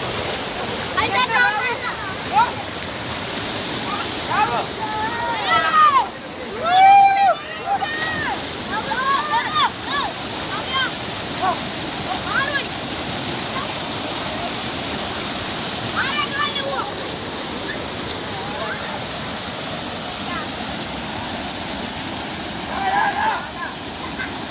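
Boys shout and call out with excitement nearby.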